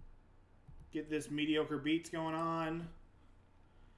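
A young man speaks briefly into a nearby microphone.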